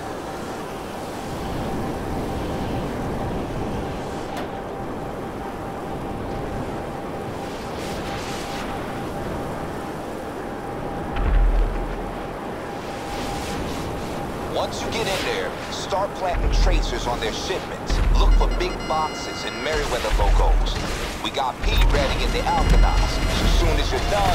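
A jet-powered hoverbike roars in flight.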